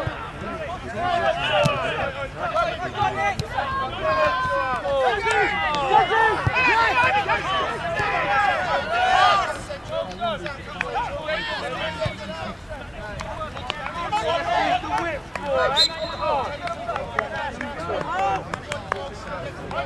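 Young players shout and call to each other across an open field outdoors.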